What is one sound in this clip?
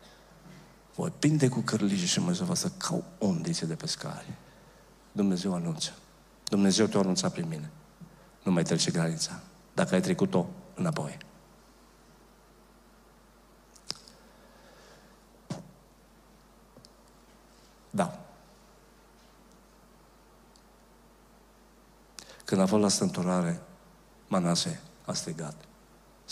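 An older man speaks with animation through a microphone, pausing often.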